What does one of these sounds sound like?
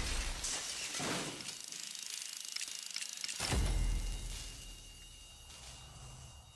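Debris clatters and rattles down.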